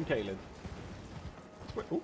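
A horse's hooves thud at a gallop.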